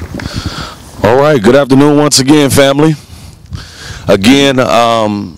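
A man speaks with animation through a microphone outdoors.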